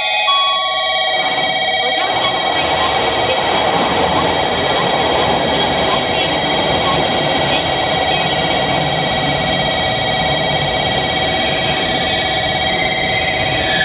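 Electric motors on a train whine with a steady high hum.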